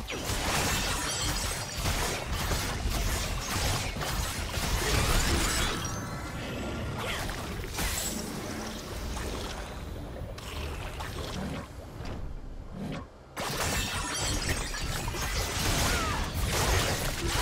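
Game characters clash with sharp hits.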